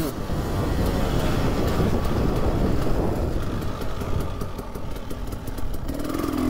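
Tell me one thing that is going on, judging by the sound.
A dirt bike engine drones steadily up close.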